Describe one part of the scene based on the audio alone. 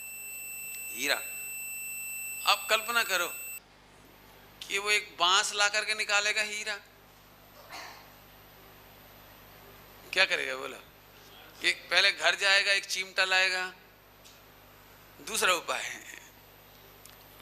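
A man speaks with animation into a microphone, heard through a loudspeaker, with pauses.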